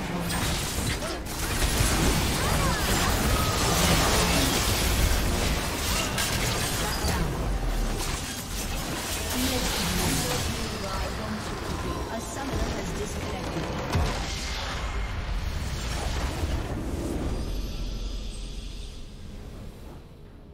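Video game spell and combat effects clash and crackle.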